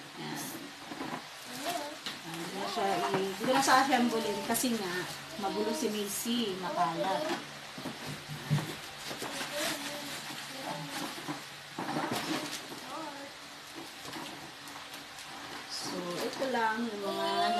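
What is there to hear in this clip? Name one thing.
Cardboard and paper rustle and crinkle as packaging is handled.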